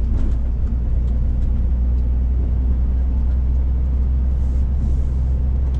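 A large diesel engine drones steadily from inside a truck cab.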